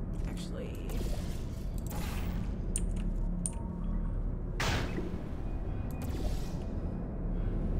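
A sci-fi gun fires with short electric zaps.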